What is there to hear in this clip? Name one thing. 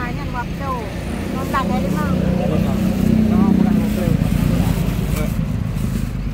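A woman talks with a vendor close by.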